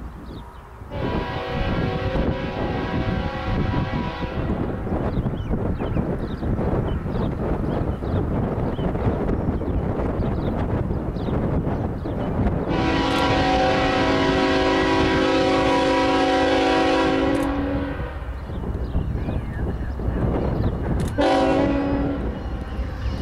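A train horn blares in long blasts, drawing nearer.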